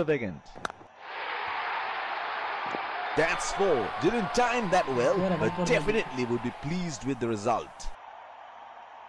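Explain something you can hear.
A crowd cheers loudly in a stadium.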